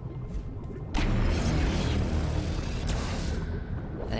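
A magical burst whooshes loudly.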